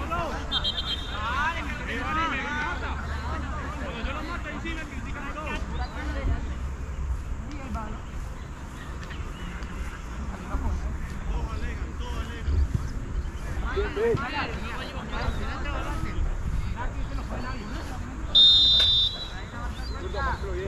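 Young men call out to each other across an open field, some way off.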